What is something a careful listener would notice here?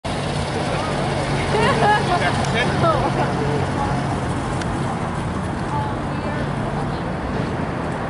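A crowd of people talks and shouts outdoors.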